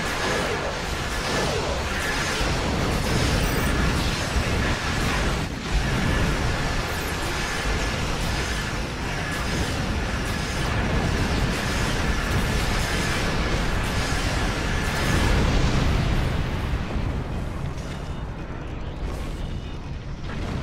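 Spaceship weapons fire and explosions rumble in a game.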